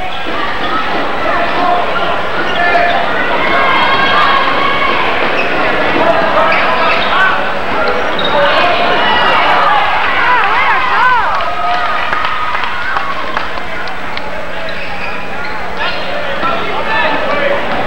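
A crowd chatters and cheers loudly in a large echoing gym.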